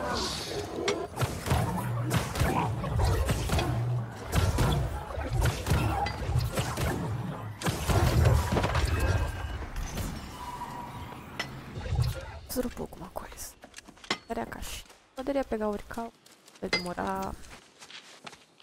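A young woman talks into a close microphone with animation.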